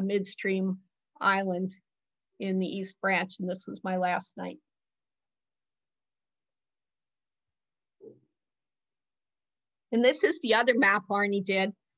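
An elderly woman speaks calmly over an online call, with pauses.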